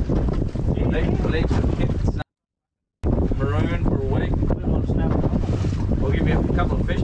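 Waves slosh against a boat's hull.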